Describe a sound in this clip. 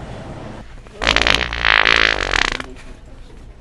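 A man makes a loud, harsh noise close by.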